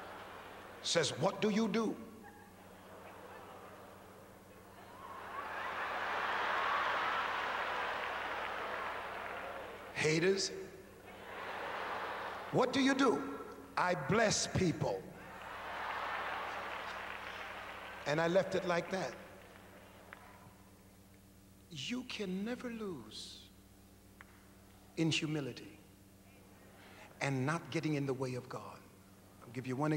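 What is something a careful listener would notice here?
A man preaches loudly and with animation through a microphone in a large echoing hall.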